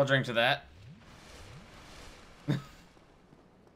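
A fireball bursts with a whoosh.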